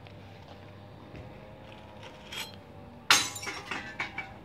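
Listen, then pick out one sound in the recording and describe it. A glass jar drops into a bottle bank and shatters inside.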